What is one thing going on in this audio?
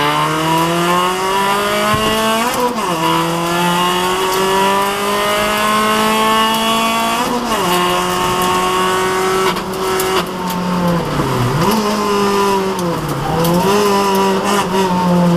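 A rally car engine roars loudly, revving up through the gears and dropping at each shift.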